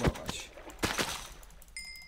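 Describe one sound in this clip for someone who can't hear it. A sword strikes a slime with a soft squelch.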